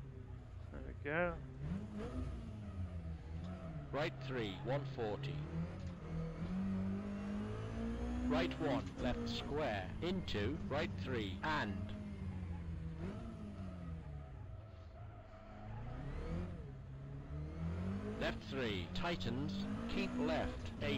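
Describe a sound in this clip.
A car engine drones and revs up and down as the car races.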